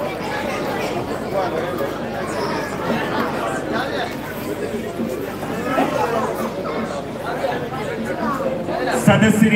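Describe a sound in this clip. Men talk and call out over one another in a noisy crowd outdoors.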